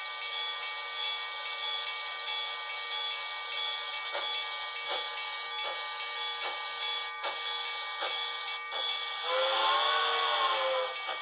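A crossing bell rings steadily and rapidly.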